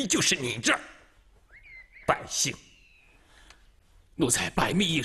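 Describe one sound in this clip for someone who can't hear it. A man speaks sharply and angrily, close by.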